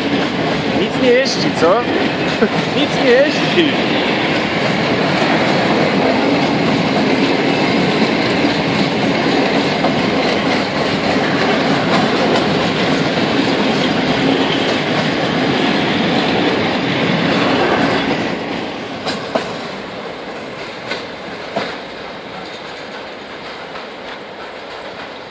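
A freight train rumbles past close by, wheels clattering on the rails, then fades into the distance.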